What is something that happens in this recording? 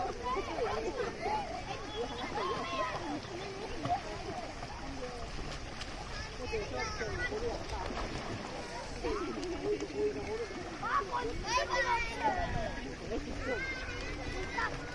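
Water splashes as children swim and wade.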